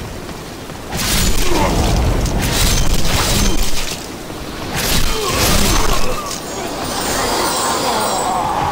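Swords clash and slash against enemies.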